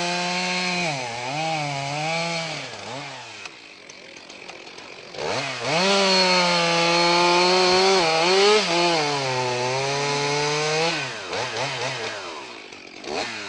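A chainsaw cuts through a log.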